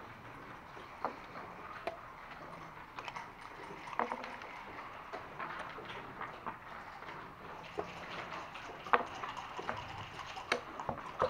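Backgammon checkers click and clack against a wooden board.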